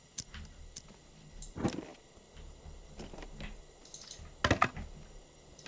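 A lantern clicks as it is lit and put out.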